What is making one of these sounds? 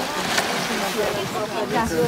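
Water splashes as a whale rolls at the surface.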